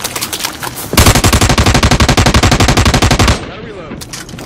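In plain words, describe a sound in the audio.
A machine gun fires a long, rapid burst.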